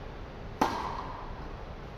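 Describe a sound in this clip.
A tennis racket strikes a ball with a sharp pop in a large echoing hall.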